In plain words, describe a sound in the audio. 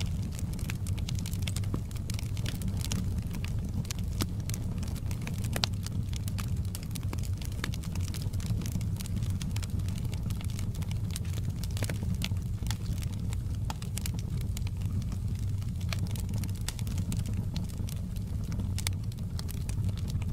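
Burning logs crackle and pop.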